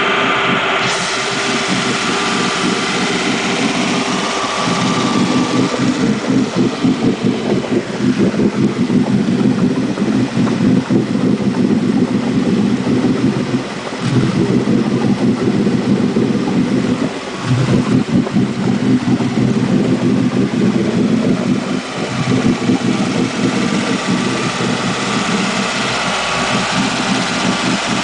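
A boat engine idles loudly with a steady, rumbling throb.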